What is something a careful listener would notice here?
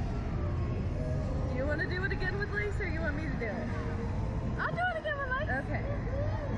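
A girl's voice rises and falls in high squeals up close.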